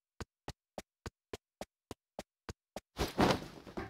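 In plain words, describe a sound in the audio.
Boots run with quick, even footsteps on hard ground.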